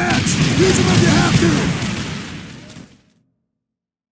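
A large explosion booms and rumbles, then fades away.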